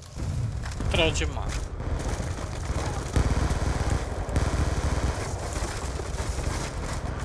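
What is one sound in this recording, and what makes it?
Rapid gunfire rattles and booms nearby.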